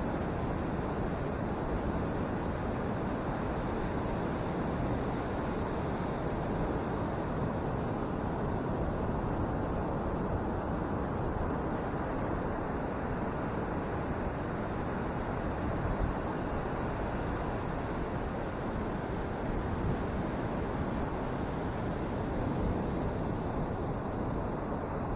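Ocean waves break and wash steadily onto the shore.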